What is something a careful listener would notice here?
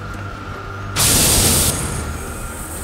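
An electrical discharge bursts with a loud crackling buzz.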